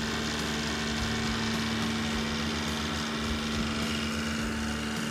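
A small tractor engine hums steadily as the tractor drives by.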